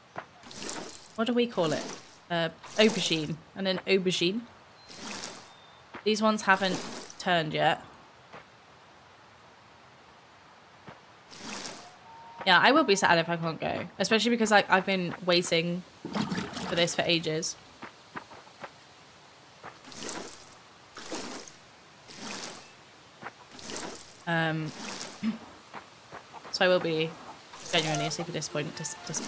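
A young woman talks casually into a close microphone.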